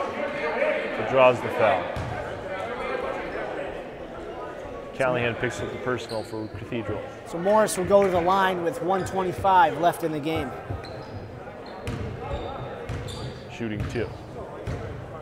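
Young men shout and call out to each other in an echoing gym.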